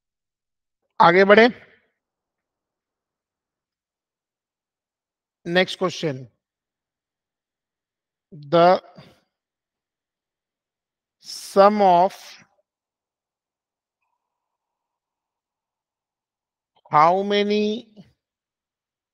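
A man speaks calmly into a microphone in short phrases with long pauses.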